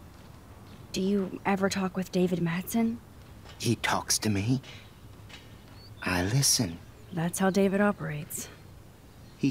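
A young woman speaks calmly and questioningly.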